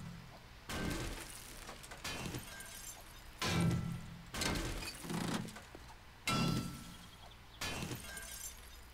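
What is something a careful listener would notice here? A metal wrench bangs repeatedly against a car body.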